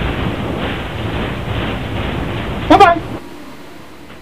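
Flames roar loudly in a steady rush.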